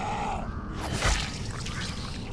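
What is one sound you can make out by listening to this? A blade strikes flesh with a heavy, wet thud.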